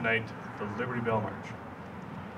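A man speaks calmly through a loudspeaker outdoors.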